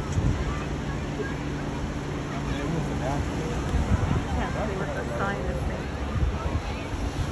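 Waves wash against rocks and a sea wall.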